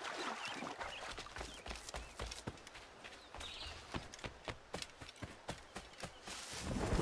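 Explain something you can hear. Footsteps tread on grass and earth.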